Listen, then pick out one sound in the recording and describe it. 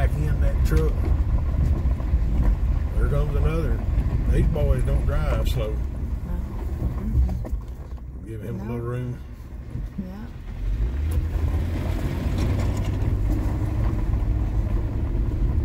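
A car rumbles steadily along a gravel road, heard from inside.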